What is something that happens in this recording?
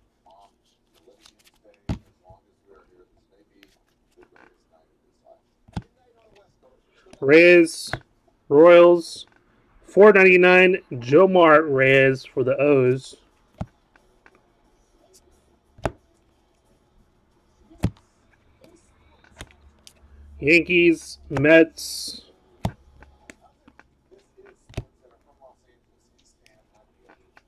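Trading cards slide and tap against each other in hands.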